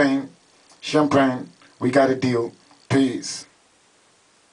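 A young man sings loudly into a microphone.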